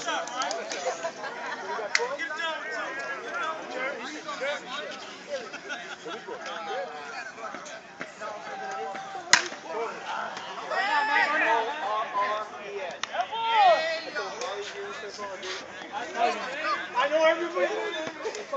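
Several people shout and cheer across an open field.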